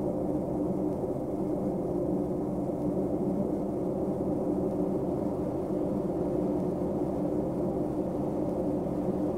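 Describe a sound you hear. A heavy vehicle's diesel engine idles with a steady low rumble.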